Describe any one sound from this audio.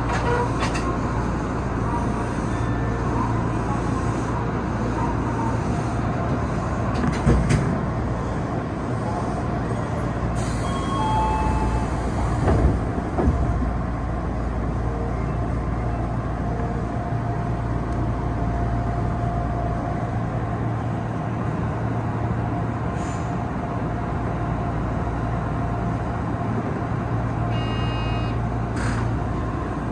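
A train rumbles and hums steadily along the tracks.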